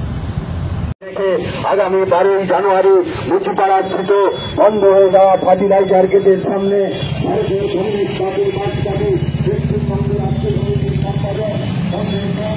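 A chant blares from a loudspeaker.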